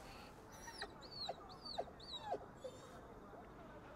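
A dog whines softly.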